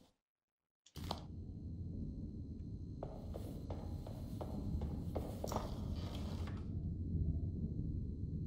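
Footsteps crunch over a debris-strewn floor.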